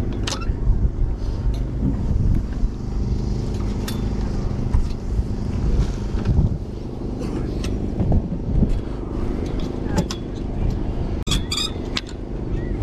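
Plastic hangers click and scrape along a rail.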